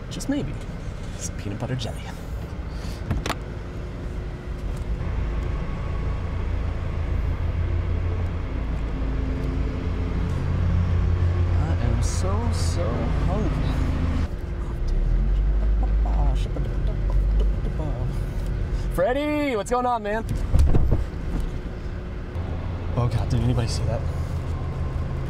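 A young man talks with animation inside a car.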